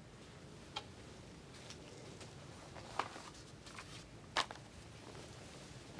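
A coat rustles as a woman puts it on.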